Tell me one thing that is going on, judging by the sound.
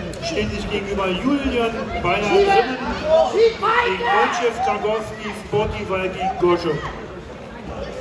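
Men shout encouragement loudly in an echoing hall.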